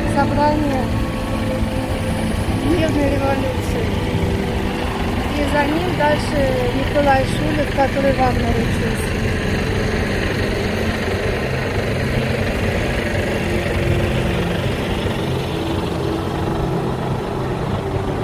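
Men and women chat and murmur nearby outdoors.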